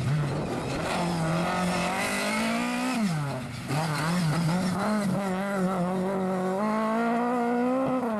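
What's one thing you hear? Gravel and dirt spray under skidding tyres.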